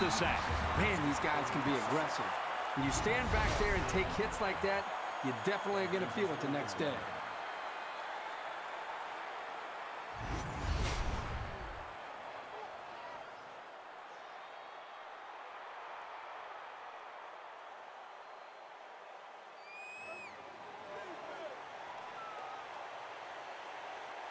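A stadium crowd roars and cheers steadily.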